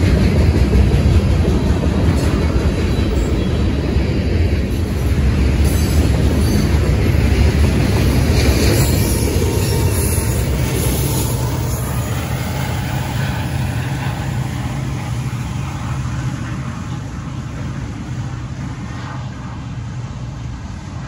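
A long freight train rumbles and clatters along the tracks close by, then slowly fades into the distance.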